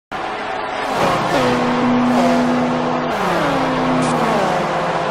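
A racing car engine roars closer, then whooshes past with a falling pitch.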